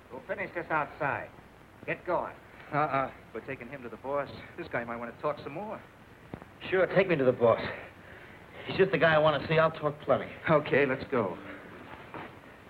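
Men talk tensely.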